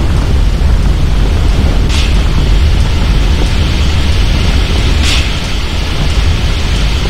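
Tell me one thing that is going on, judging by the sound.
A fire hose sprays water with a steady hiss.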